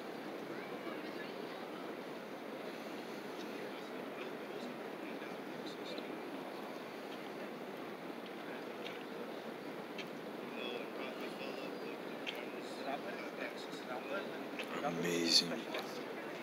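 Water laps gently against a shore outdoors.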